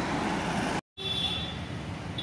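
A motorbike rides by on a busy street at night.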